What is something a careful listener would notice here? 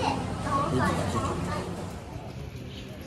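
Men and women chat at a table nearby.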